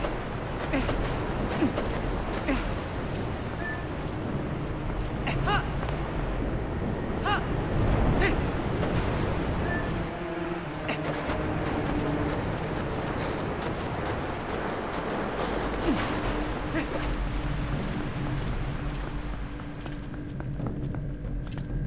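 Footsteps crunch over sand and stone.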